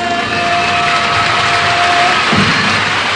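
A man and a woman sing together into a microphone, holding a long note.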